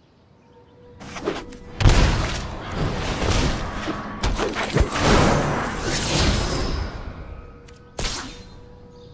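A burst of rushing magical effects swells and fades.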